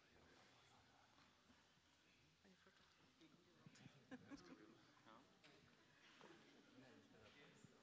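Adult men and women chat and murmur nearby in a crowd.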